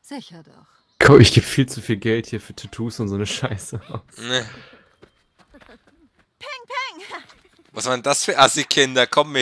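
Children shout and laugh excitedly.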